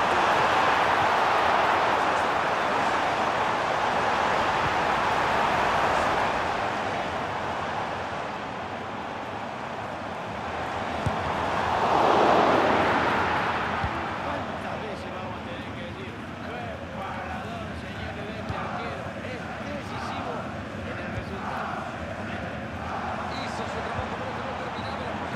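A large stadium crowd roars steadily, swelling to a loud cheer for a moment.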